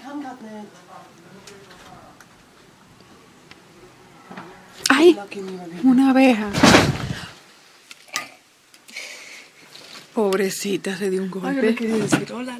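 A young woman talks animatedly close to the microphone.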